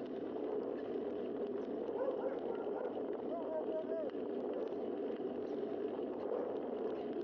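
Tyres roll steadily over smooth pavement.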